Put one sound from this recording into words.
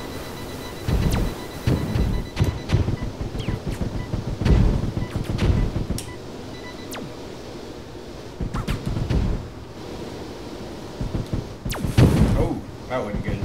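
A man talks close to a headset microphone.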